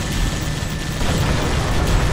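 A blast explodes loudly.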